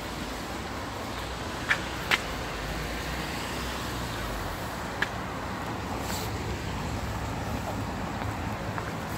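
Rain falls steadily on wet ground outdoors.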